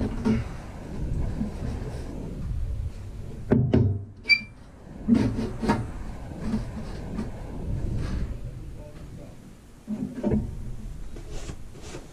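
A thin metal sheet rattles and clanks.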